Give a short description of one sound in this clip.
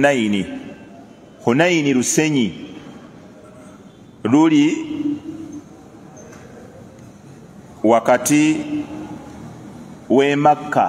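A middle-aged man speaks slowly and earnestly into a close microphone, with long pauses.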